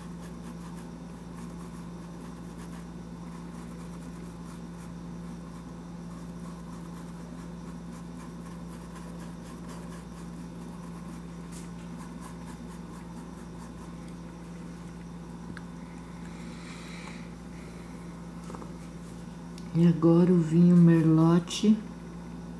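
A paintbrush brushes softly across canvas.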